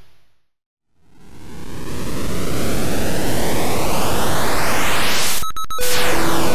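A hyperspace jump swells in a rising whoosh.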